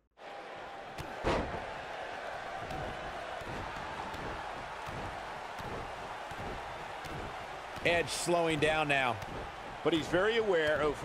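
Heavy thuds of kicks land on a body.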